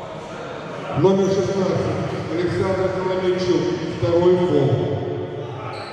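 A crowd of spectators chatters and cheers loudly.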